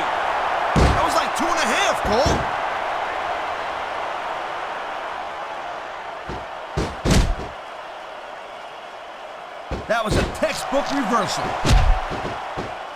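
A large crowd roars and cheers in an arena.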